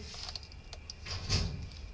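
A hand brushes against a cardboard box.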